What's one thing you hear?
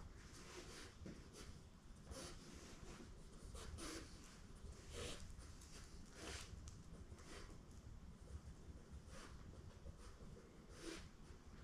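A dog's paws patter on a hard floor.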